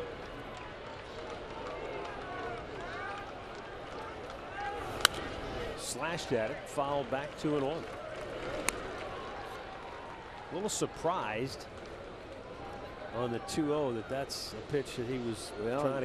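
A crowd murmurs steadily in a large open ballpark.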